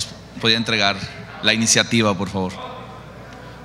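A man speaks into a microphone, heard through loudspeakers in a large hall.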